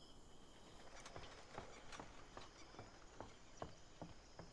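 Footsteps tap on a wooden deck at a steady walking pace.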